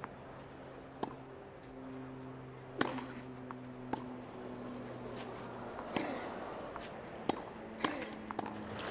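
A tennis ball is struck sharply back and forth with rackets.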